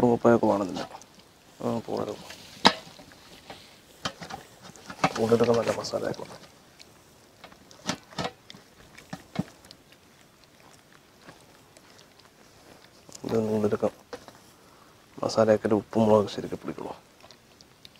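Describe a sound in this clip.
Wet hands squelch as they rub a thick paste into raw chicken.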